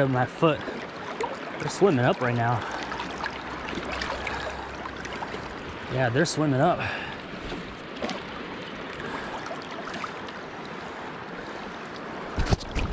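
Wind blows across open water outdoors.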